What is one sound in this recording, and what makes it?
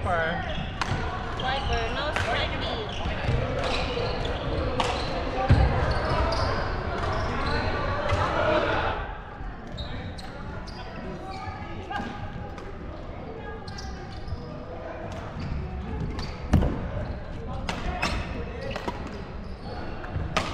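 Several men chatter and call out across the hall.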